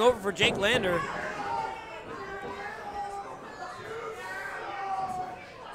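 A crowd talks and murmurs in an echoing hall.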